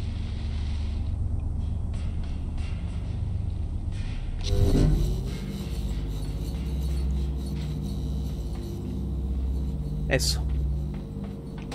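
Light footsteps patter on a hard surface.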